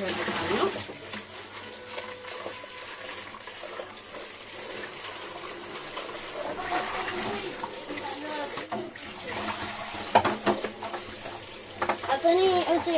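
A plastic bowl clatters against dishes.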